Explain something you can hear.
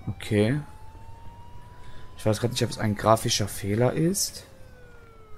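Sharp knocks strike a car door.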